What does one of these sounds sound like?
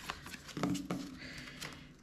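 A pen scratches on paper while writing.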